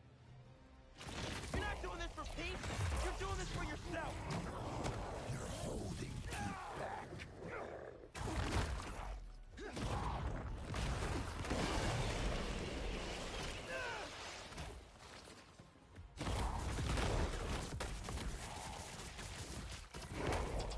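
Heavy blows and thuds land in a fierce fight.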